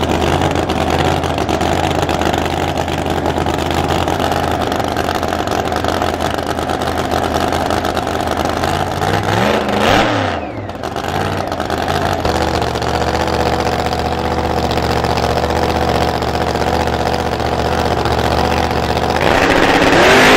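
A supercharged V8 drag car idles with a lumpy rumble.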